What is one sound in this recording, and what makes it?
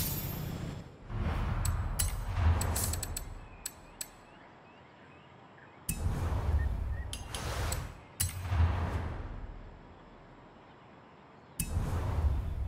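Short menu clicks and whooshes sound.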